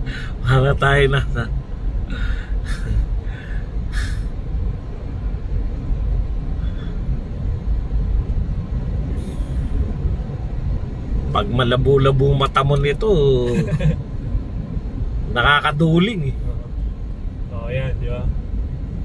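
A car's engine and tyres rumble steadily on the road.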